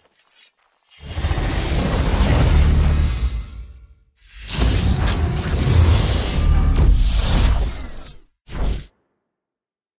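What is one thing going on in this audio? A loud whooshing logo sound swells and fades.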